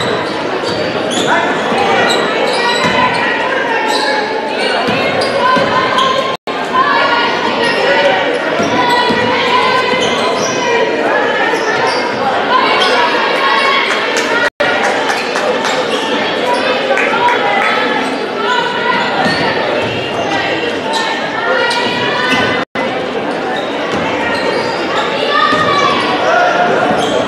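A large crowd cheers and shouts in an echoing gym.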